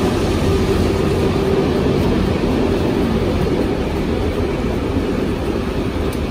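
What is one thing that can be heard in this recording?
A train's engine hums loudly and steadily.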